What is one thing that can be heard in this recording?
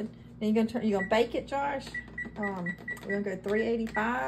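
An oven beeps as its buttons are pressed.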